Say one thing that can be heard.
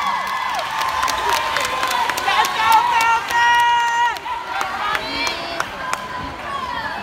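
Hands clap sharply in the crowd.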